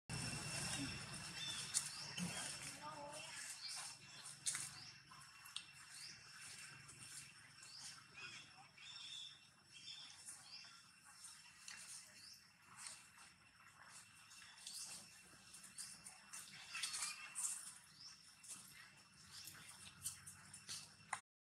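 A baby monkey squeaks softly and repeatedly.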